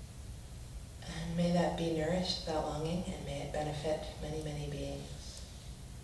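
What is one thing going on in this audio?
A woman chants in a steady, sustained voice nearby.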